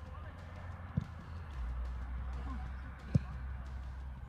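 A football is kicked with a dull thud outdoors.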